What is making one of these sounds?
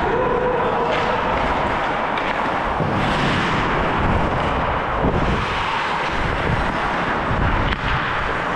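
Skate blades scrape and carve on ice close by.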